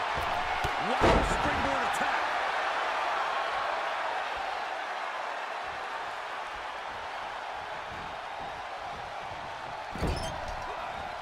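Heavy thuds of bodies slamming onto a wrestling mat ring out.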